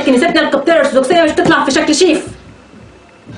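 A woman speaks clearly and calmly, close to a microphone.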